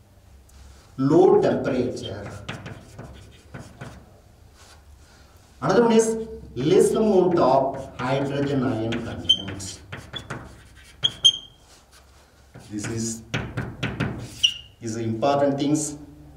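A man lectures calmly and clearly nearby.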